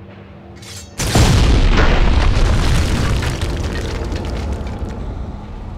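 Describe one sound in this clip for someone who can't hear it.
A loud explosion booms and then rumbles away.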